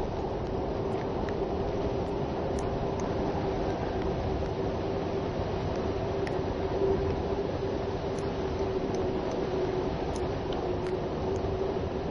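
Hands and feet knock on a wooden ladder while climbing.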